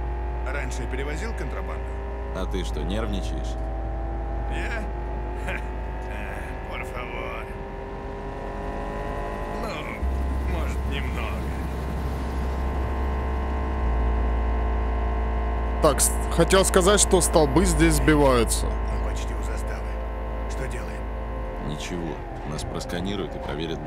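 A car engine roars steadily while driving fast.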